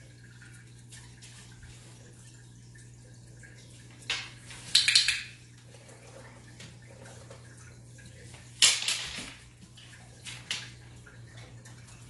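A dog's paws click on a wooden floor.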